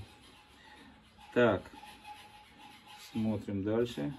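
Metal parts clink as hands handle them.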